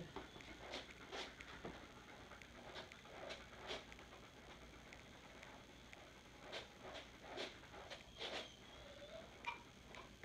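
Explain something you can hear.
A brush scrapes and rustles through a dog's fur.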